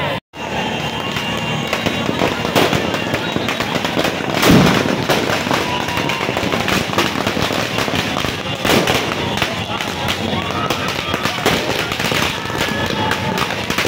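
Fireworks whoosh and fizz as they shoot up.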